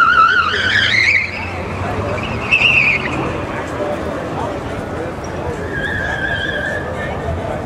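A car engine hums steadily as the car drives around.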